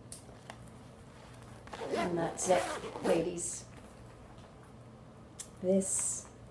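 A leather case rustles and taps in a woman's hands.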